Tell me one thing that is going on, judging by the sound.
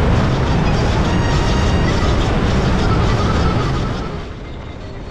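A heavy truck roars past close by.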